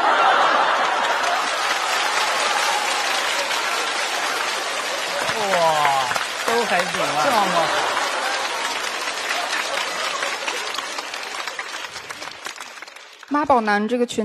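An audience laughs and applauds loudly.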